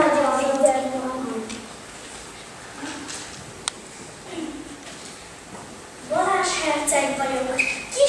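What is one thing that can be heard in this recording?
A young child speaks loudly in an echoing hall.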